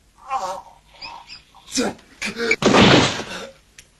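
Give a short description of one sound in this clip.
A body thuds heavily against a wall.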